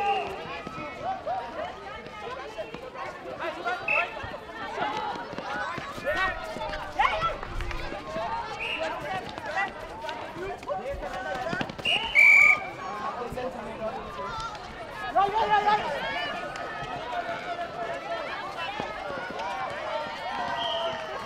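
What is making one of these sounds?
Young women call out to each other across a court, outdoors.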